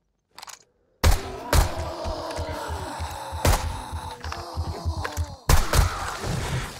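Gunshots fire in rapid bursts, loud and sharp.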